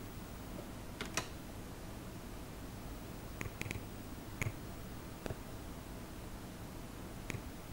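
Electronic pool balls click against each other in a computer game.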